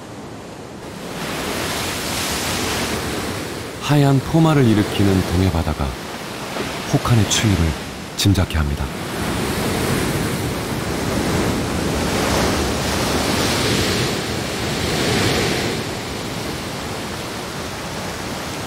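Waves crash and surge over rocks close by.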